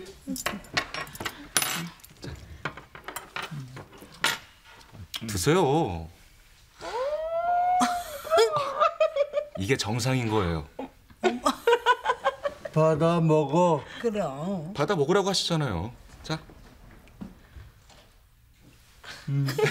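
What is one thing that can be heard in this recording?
A man talks playfully, close by.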